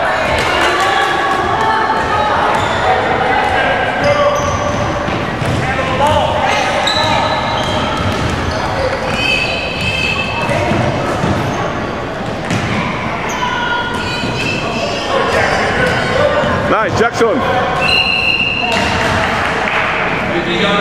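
Young boys shout and call out in a large echoing hall.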